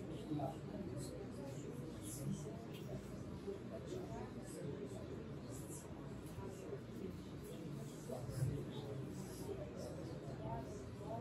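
A middle-aged man speaks calmly into a microphone in a room with a slight echo.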